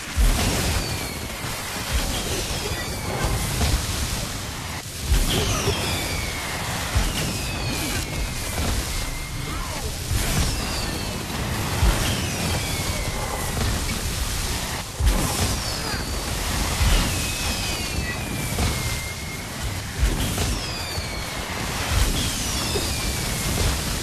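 Spell blasts crackle and boom over and over.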